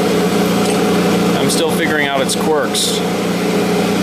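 A metal wrench clinks against a machine.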